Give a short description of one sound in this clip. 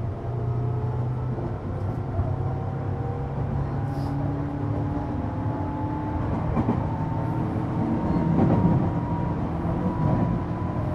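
A train's electric motor whines, slowly rising in pitch.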